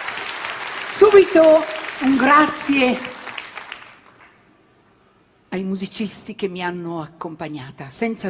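A woman speaks with animation into a microphone, heard through a loudspeaker.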